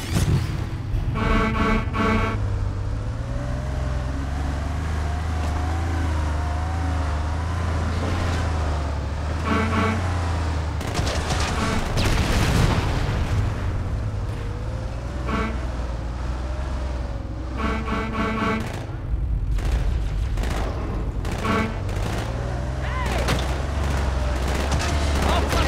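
A vehicle engine hums and revs steadily.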